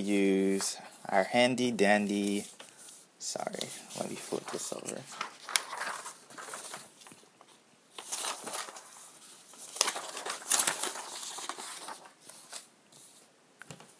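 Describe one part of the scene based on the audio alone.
Sheets of paper rustle and shuffle.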